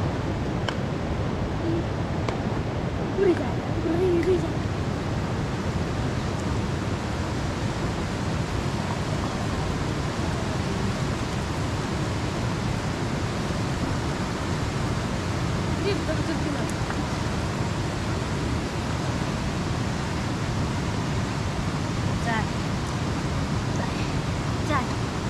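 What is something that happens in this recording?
A river rushes loudly nearby.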